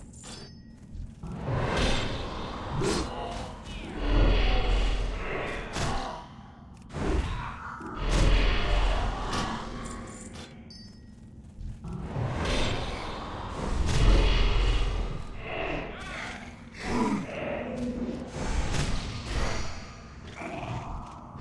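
Magic spells crackle and boom in a game battle.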